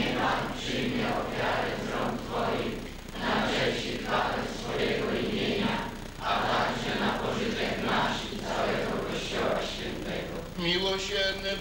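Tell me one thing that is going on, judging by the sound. An elderly man speaks steadily, reciting in a large echoing room.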